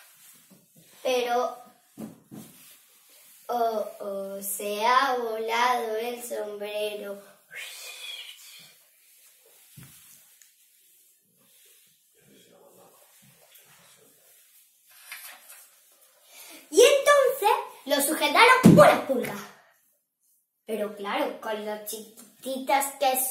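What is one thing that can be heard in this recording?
A young girl sings loudly nearby.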